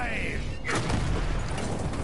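Explosions boom in a game.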